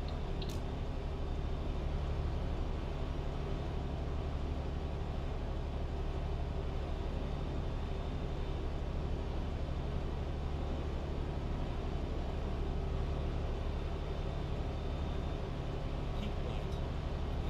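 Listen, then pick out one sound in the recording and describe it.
Tyres roll steadily on a road.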